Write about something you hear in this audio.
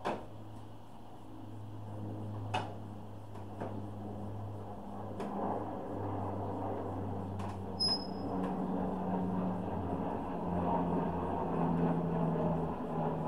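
A small engine idles with a steady low rumble.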